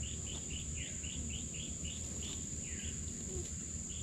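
Leafy plants rustle softly as a man pulls at them.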